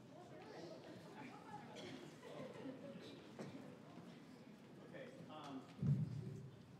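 A crowd of young people murmurs and chatters in a large echoing hall.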